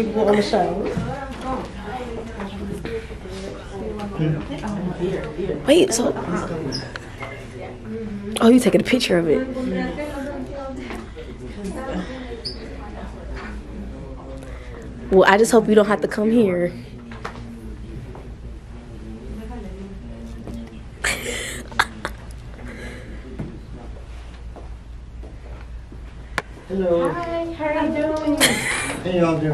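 Women chat nearby indoors.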